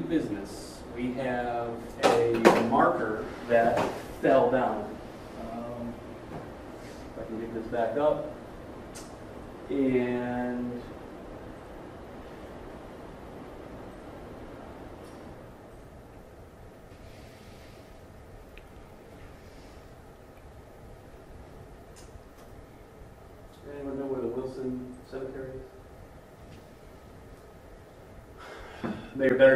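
A man speaks calmly in a quiet room, pausing between phrases.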